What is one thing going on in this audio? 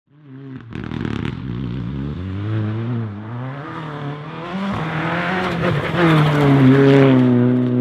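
A rally car engine roars and revs hard as the car speeds closer.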